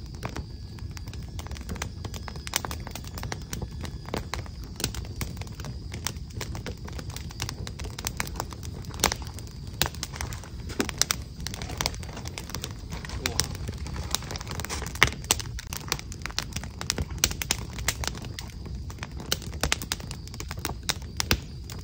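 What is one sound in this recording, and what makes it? Small objects click and tap close by as a woman handles them.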